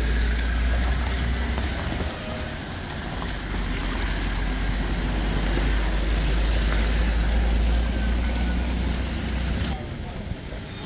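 A car engine rumbles close by.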